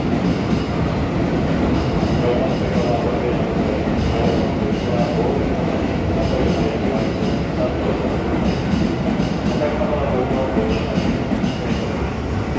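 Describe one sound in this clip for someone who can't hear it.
A train rumbles and clatters past at speed, close by.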